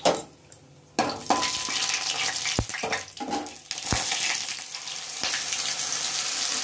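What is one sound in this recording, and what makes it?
Seeds sizzle and crackle in hot oil in a pan.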